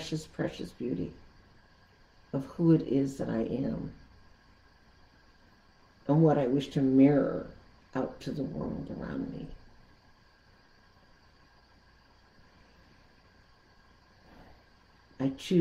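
An elderly woman speaks calmly and slowly into a nearby microphone, with long pauses.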